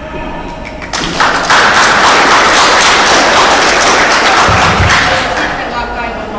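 A group of people claps.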